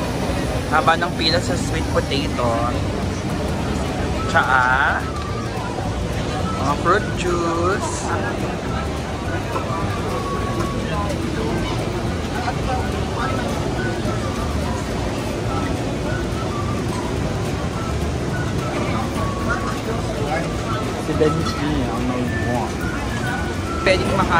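Nearby voices of men and women talk and call out in bursts.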